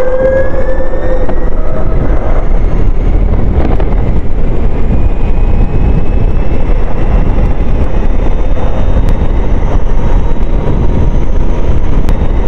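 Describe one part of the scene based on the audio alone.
An electric scooter motor whines, rising in pitch as it speeds up.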